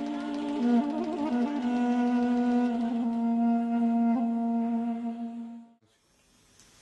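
Two wind instruments play a melody together.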